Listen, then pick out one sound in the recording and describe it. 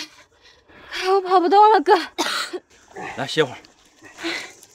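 A young man speaks in a weary, complaining voice.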